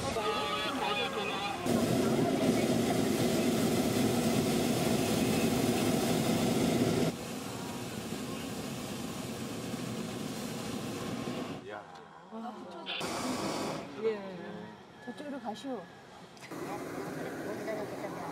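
A hot air balloon burner roars loudly overhead.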